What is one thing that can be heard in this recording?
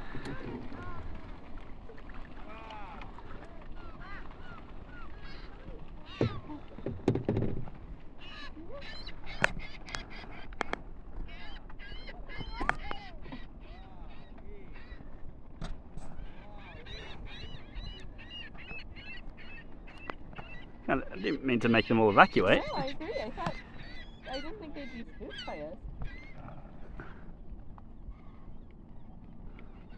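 Water laps against a small boat.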